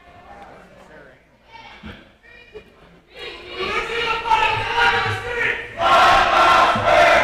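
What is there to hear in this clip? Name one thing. A crowd chatters and then cheers and shouts loudly in a large echoing gym.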